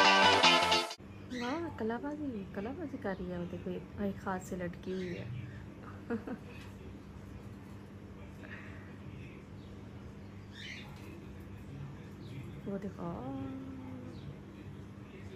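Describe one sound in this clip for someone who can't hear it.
A parrot squawks and chatters in short, warbling calls.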